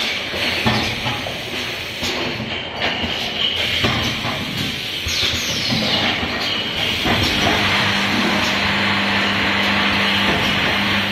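Glass bottles clink together as they move along.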